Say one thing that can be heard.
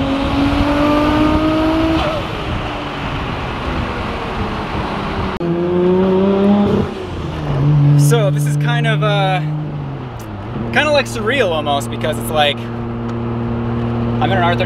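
A car engine hums and revs, rising in pitch as it speeds up.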